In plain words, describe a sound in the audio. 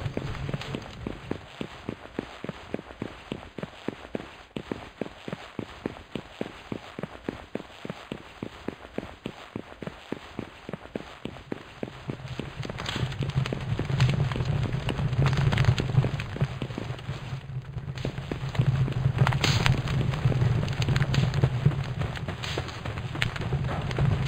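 Quick footsteps run steadily over a stone floor.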